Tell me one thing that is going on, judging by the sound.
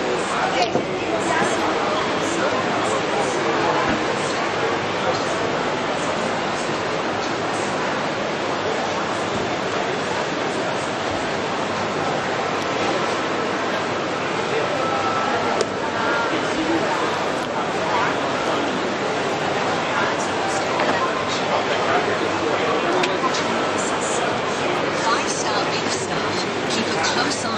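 A crowd murmurs steadily in a busy indoor hall.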